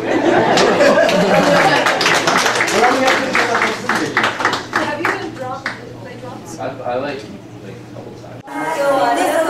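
A small audience applauds indoors.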